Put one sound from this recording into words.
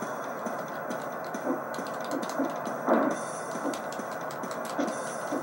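Wrestlers thud onto the mat in a video game.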